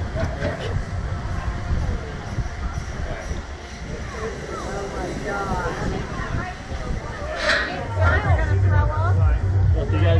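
Wind rushes past loudly in gusts.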